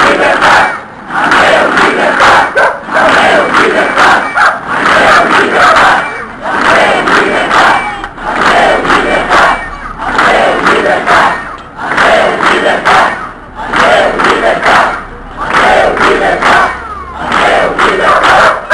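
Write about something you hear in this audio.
A crowd of men and women chants loudly in rhythm outdoors.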